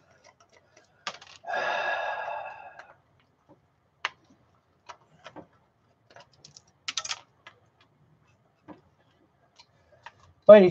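Small metal parts click and tap as a hard drive is taken apart.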